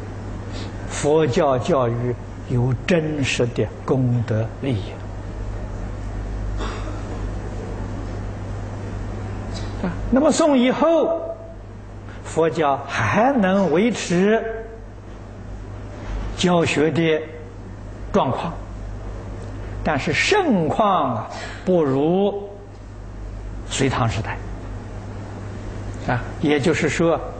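An elderly man speaks calmly and slowly, close to a microphone, with pauses.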